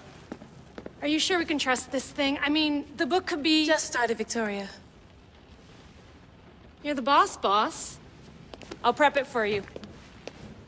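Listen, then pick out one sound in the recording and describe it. A middle-aged woman speaks with animation.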